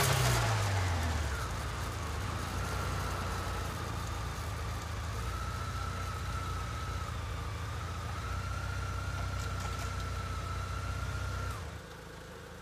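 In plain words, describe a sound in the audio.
A motorcycle engine runs steadily close by.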